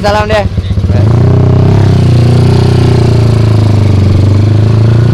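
A motorcycle engine roars steadily as the bike rides along a road.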